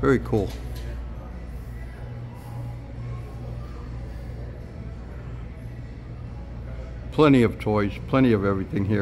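A low, steady hum of ventilation fills a large indoor space.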